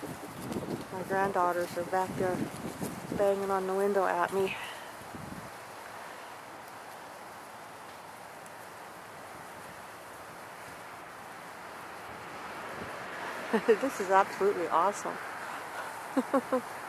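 An elk bugles with high, whistling squeals nearby.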